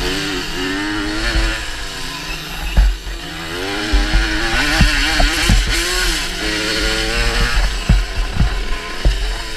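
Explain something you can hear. A dirt bike engine revs loudly close by, rising and falling as it changes gear.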